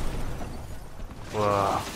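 A brick wall bursts apart with a loud crash.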